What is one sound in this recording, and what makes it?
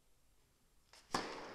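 A tennis racket strikes a ball hard.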